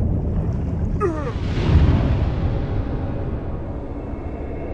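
A sudden whooshing blast bursts and slowly fades.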